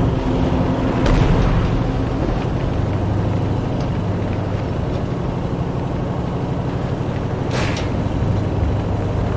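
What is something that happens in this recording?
A heavy vehicle engine rumbles steadily.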